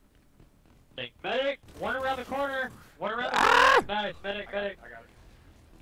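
A man shouts and laughs loudly into a microphone.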